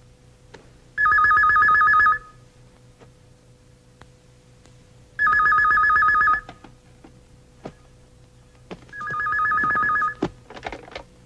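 A telephone rings in short bursts.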